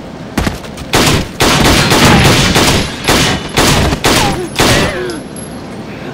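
A rifle fires several loud shots in a large echoing hall.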